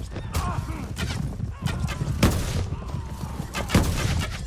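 Gunshots crack repeatedly nearby.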